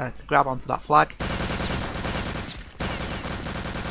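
A submachine gun fires in short rattling bursts.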